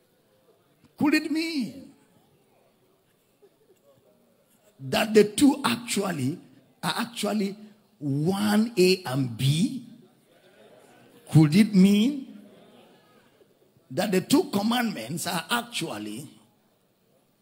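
A man preaches through a microphone and loudspeakers in a large echoing hall, speaking in forceful bursts with pauses.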